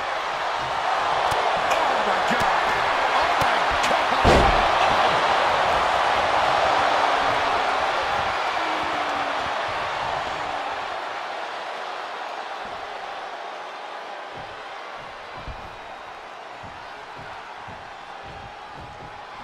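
A large crowd roars and cheers loudly, then slowly quiets down.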